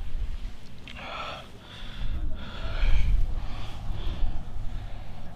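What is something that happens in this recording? Men talk quietly in the distance.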